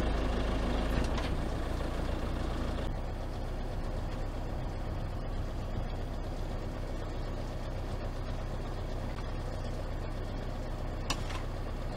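A machine engine hums steadily.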